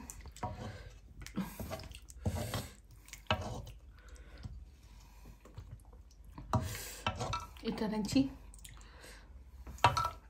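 A metal ladle clinks against a metal pot and plate.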